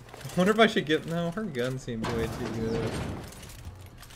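A heavy metal door slides open.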